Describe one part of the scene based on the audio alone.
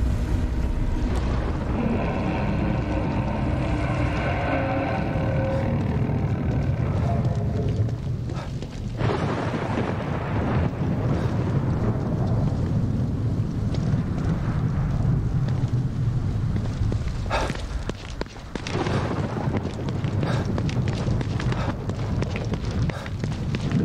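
Footsteps run quickly over hard pavement.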